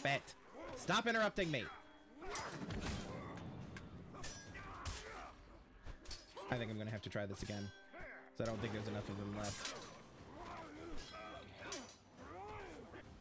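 Swords clash and hit in a fast fight.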